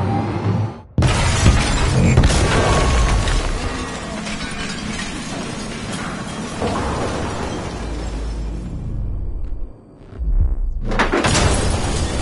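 Glass shatters loudly as a truck crashes through a window.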